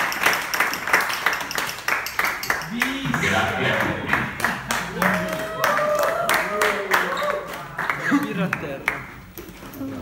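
A crowd claps along in a steady rhythm.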